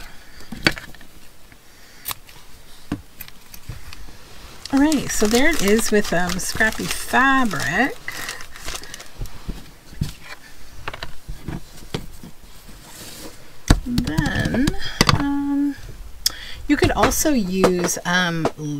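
Paper cards rustle and slide across a wooden tabletop.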